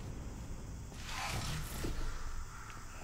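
A heavy sliding door slides shut with a hiss.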